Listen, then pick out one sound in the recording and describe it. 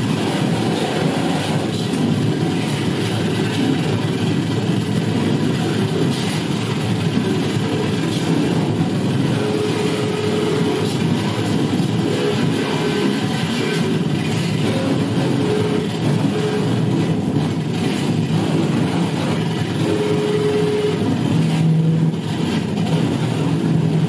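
Loud music with a heavy bass plays through an amplifier.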